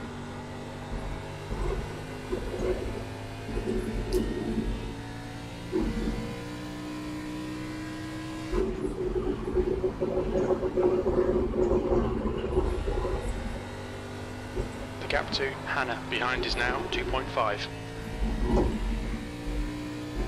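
A race car engine drones steadily and shifts in pitch.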